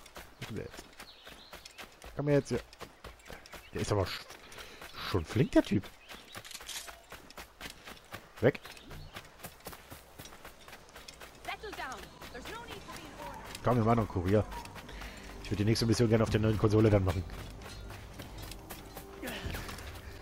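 Footsteps run on sand.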